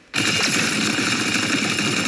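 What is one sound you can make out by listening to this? A mech's cannon fires a shot that bursts with a bang.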